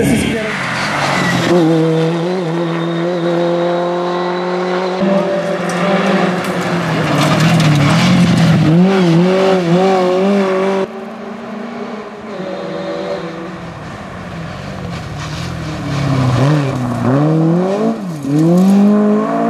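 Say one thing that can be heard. A rally car engine revs hard as the car speeds past.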